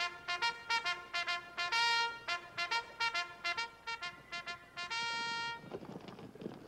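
A bugle plays a call in short, sharp notes.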